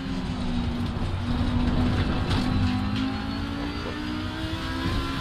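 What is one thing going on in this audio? A racing car engine changes pitch as gears shift.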